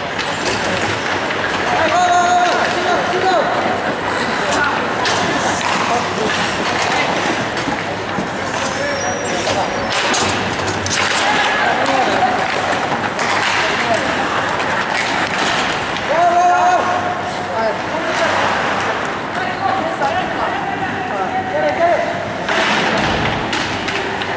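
A puck knocks against the boards.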